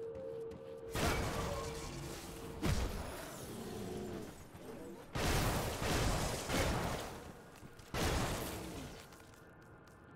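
Spell blasts burst with loud whooshing crashes.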